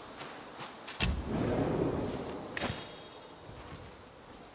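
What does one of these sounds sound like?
A magical whoosh swirls and fades.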